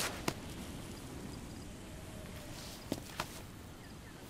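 Hands scrape and grip against rough stone.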